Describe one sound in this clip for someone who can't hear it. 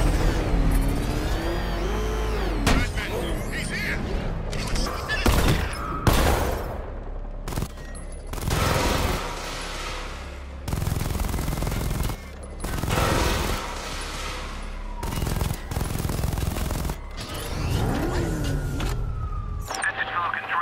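Gunfire and blasts crack in bursts.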